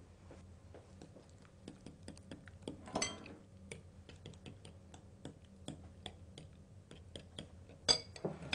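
A fork clicks against a glass bowl while whisking eggs.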